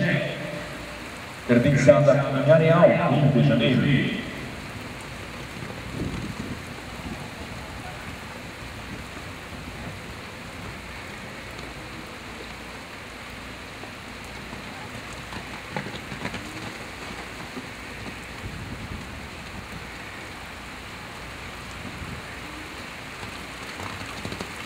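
A horse's hooves thud on soft dirt as it canters.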